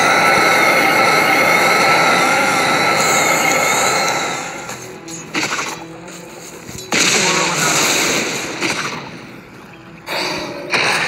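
Video game combat effects whoosh, clash and crackle in loud bursts.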